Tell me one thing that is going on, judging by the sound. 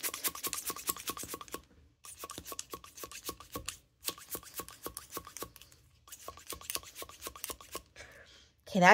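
A pen taps quickly and repeatedly on paper.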